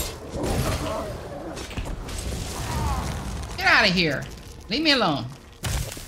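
A frost spell cracks and shatters.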